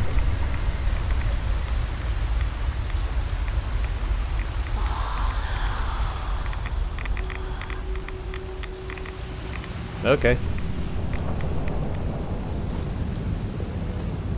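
Footsteps crunch over soft ground and brush.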